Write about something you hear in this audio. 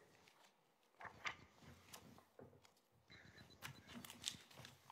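Papers rustle on a table.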